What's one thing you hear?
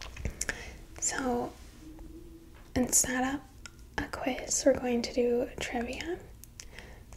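A young woman speaks calmly and close into a microphone.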